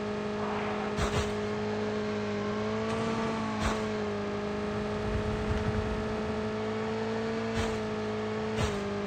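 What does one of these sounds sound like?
Knocks and thumps sound as a motorbike bumps over rough ground.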